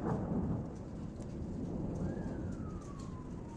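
Thunder rumbles low outdoors.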